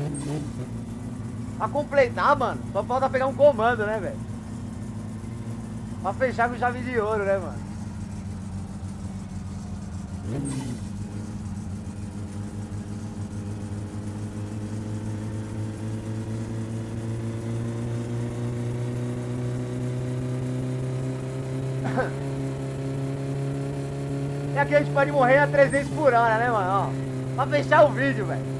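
A car engine drones steadily, its pitch slowly rising.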